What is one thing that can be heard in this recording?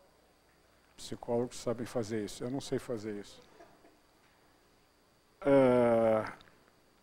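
An elderly man speaks into a microphone in an echoing hall.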